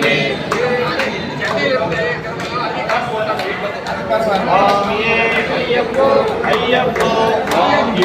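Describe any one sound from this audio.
An elderly man chants in a steady, melodic voice close by.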